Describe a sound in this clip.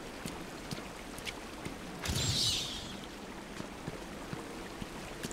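Footsteps tread slowly on hard ground.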